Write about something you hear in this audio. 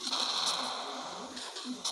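An explosion roars nearby.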